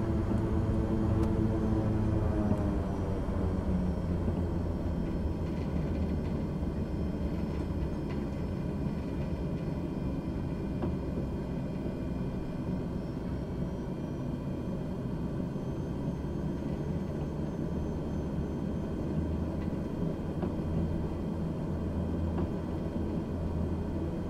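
A jet engine whines steadily as an aircraft taxis.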